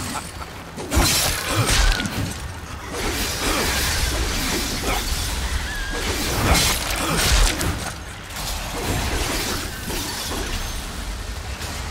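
A blade swishes and strikes with sharp, heavy impacts.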